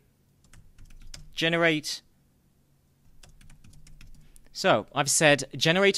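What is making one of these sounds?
Keys click on a keyboard as someone types.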